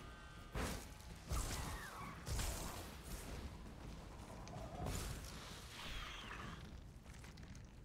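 Magic spells whoosh and burst in a fight.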